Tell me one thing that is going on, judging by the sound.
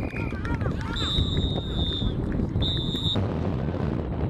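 A referee's whistle blows in two sharp blasts.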